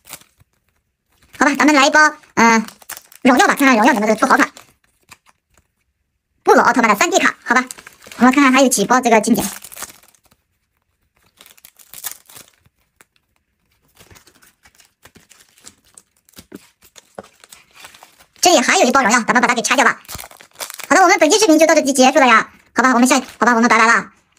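Trading cards slide and flick against each other as they are shuffled by hand.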